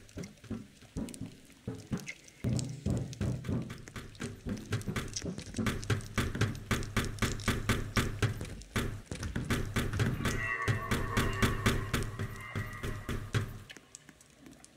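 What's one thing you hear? Footsteps thud quickly and steadily.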